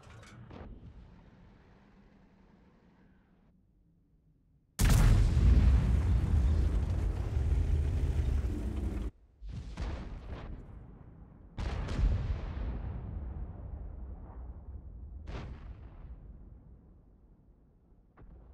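A cannon fires with a heavy boom.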